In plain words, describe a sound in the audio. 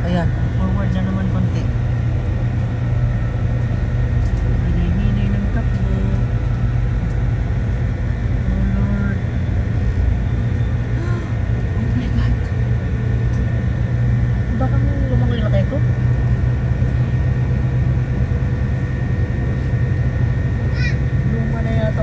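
A boat's engine hums low and steady.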